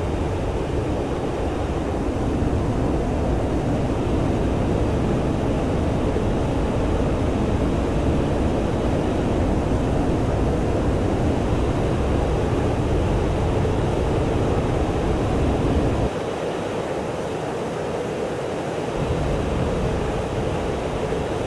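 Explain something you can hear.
A jet engine roars steadily, with a rushing of air.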